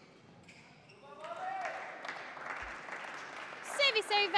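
A small crowd applauds in an echoing hall.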